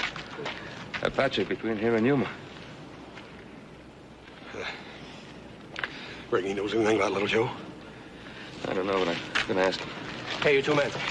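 A man speaks firmly and loudly nearby.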